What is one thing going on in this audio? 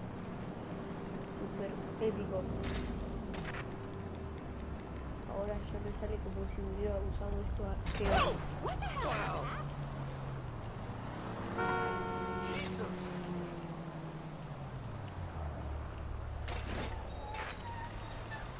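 A bicycle's tyres roll over pavement.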